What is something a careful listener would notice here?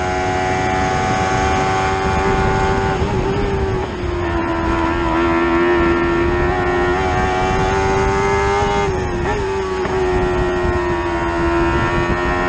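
A racing car engine drones loudly and steadily, its pitch dipping briefly at gear changes.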